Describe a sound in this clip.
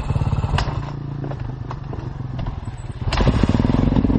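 Dirt bike engines idle and putter nearby.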